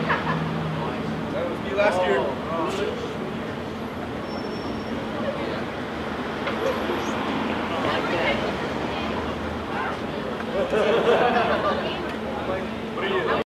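Several teenage girls chatter and laugh excitedly nearby.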